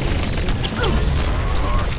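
Pistols fire in rapid bursts with loud bangs.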